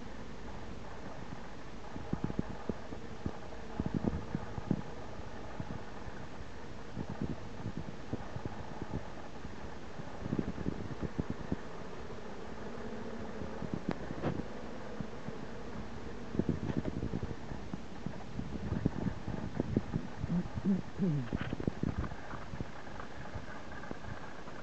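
Bees buzz steadily around hive entrances.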